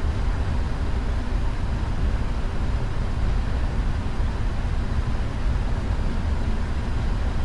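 Jet engines roar steadily as an airliner rolls down a runway.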